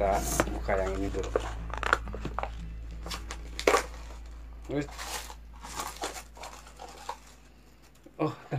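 Plastic wrapping crinkles and rustles in a man's hands.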